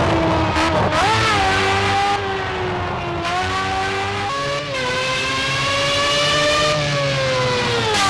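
An open-wheel racing car engine screams at high revs.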